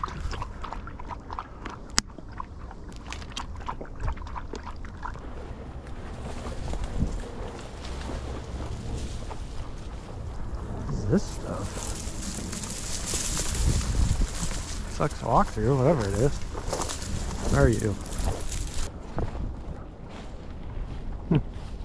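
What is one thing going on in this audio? Footsteps rustle and crunch through dry grass and brush.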